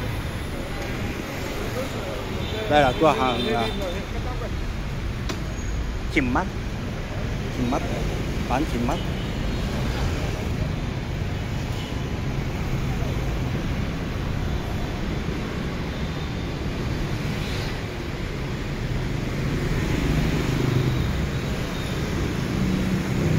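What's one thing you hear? Street traffic rumbles steadily in the distance outdoors.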